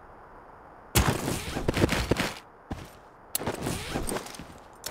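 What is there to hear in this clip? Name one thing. Gear and items rustle and click as they are handled.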